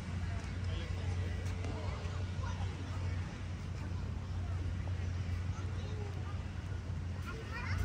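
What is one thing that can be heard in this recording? Footsteps tap on a paved path.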